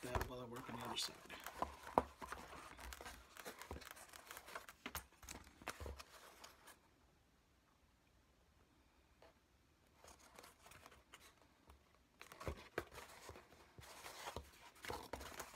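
Foam pieces rustle and thump as they are handled.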